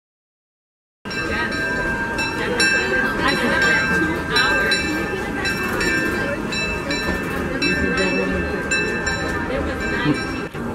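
A steam train rolls slowly past, clanking and hissing.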